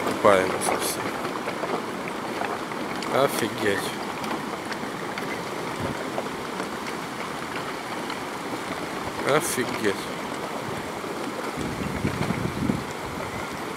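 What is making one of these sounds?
A swollen river rushes steadily with a broad roar of water.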